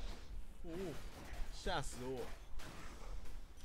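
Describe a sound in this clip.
Sword slashes whoosh with a fiery crackle.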